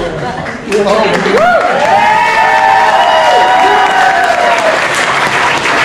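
Guests clap and cheer.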